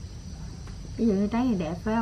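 A young woman speaks up close with animation.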